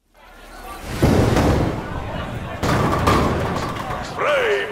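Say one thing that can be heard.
Bowling balls roll down wooden lanes with a low rumble.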